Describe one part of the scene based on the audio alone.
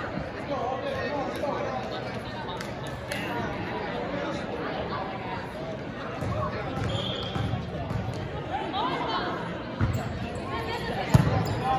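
A volleyball is struck with dull thumps.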